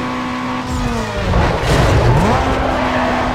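Tyres screech on a wet road.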